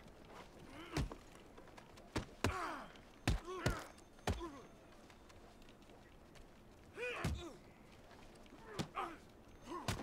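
Punches land with heavy thuds in a fistfight.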